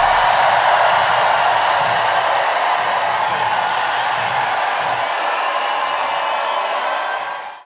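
A large crowd cheers and screams loudly in a vast open space.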